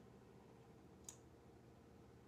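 A small cap clicks open on a bottle.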